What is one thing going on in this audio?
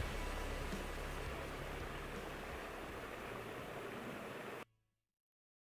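A small waterfall splashes and trickles steadily.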